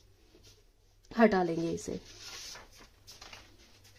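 Paper rustles as a sheet is lifted and slid away.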